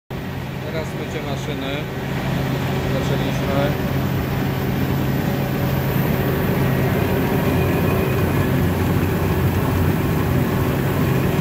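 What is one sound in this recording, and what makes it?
A large machine hums loudly and steadily.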